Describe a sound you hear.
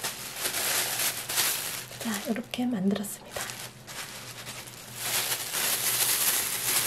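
Plastic gloves crinkle and rustle as hands press soft dough.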